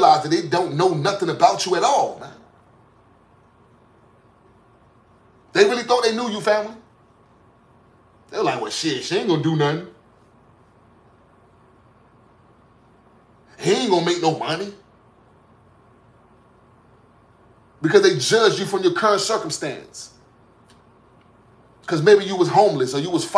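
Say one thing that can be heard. A man speaks calmly and close by, in short phrases with long pauses.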